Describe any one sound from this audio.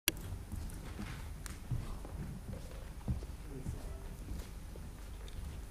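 A piano plays along softly.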